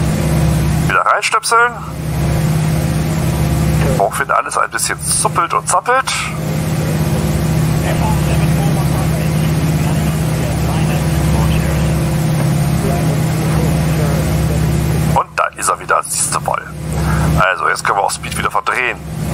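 A man speaks into a headset microphone in short bursts.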